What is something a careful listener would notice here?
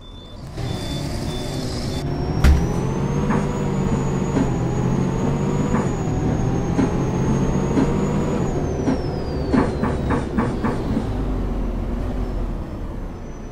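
A bus engine drones steadily as the bus drives along, then winds down.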